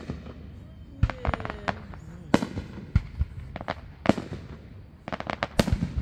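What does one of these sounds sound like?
Fireworks crackle in quick bursts.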